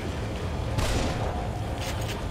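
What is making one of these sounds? A loud explosion bursts and rumbles.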